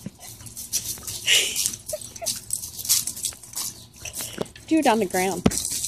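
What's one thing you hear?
A dog barks excitedly.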